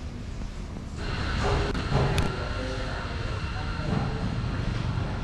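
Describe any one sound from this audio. Street traffic hums in the distance.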